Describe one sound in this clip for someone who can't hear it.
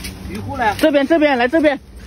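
Leaves rustle close by.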